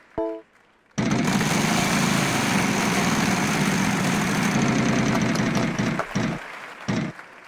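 A prize wheel spins with a rattling clatter and slows down.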